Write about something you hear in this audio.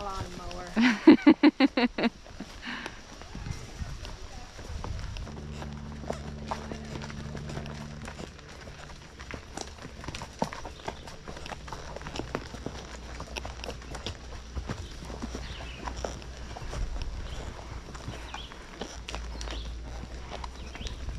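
Horse hooves clop slowly on a dirt trail.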